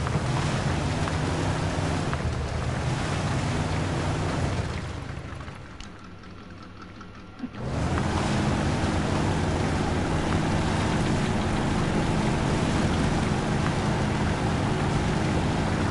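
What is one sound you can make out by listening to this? A truck engine drones and revs.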